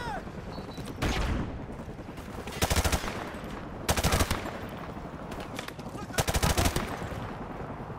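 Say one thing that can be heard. Rifle shots fire in short, loud bursts.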